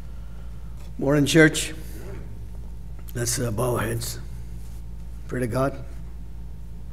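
An elderly man speaks slowly and solemnly into a microphone, with pauses between phrases.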